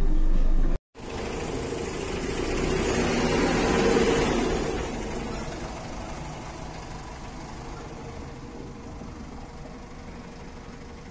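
A bus pulls away with its engine rumbling and slowly fades into the distance.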